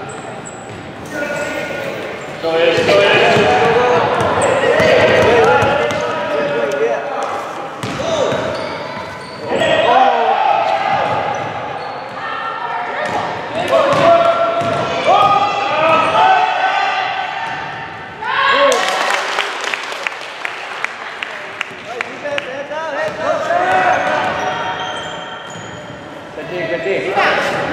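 Young girls shout and call out across a large echoing gym.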